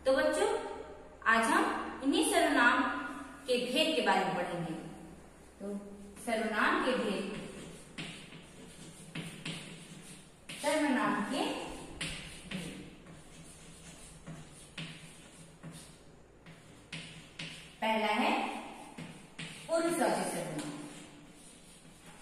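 A young woman speaks clearly and calmly in a slightly echoing room.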